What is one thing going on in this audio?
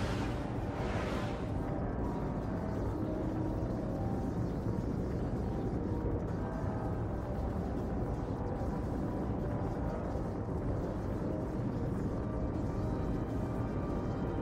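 Spacecraft engines roar steadily as they fly past.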